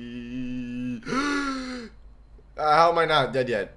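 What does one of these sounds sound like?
A young man speaks loudly and excitedly into a close microphone.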